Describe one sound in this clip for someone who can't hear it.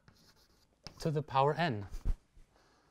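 A man speaks briefly and calmly, as if lecturing, in a room.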